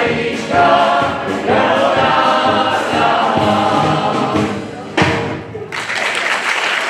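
A brass band plays a tune in a large hall.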